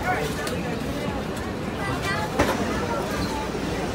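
Children and adults chatter nearby.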